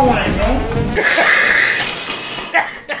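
Two men laugh loudly.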